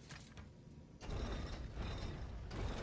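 A heavy stone wheel grinds and rumbles as it turns.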